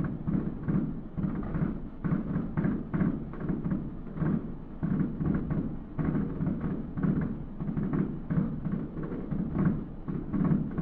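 Fireworks boom and crackle in the distance, echoing across open air.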